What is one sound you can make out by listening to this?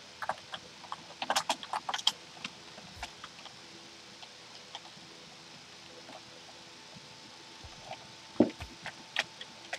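Footsteps tap on stone blocks.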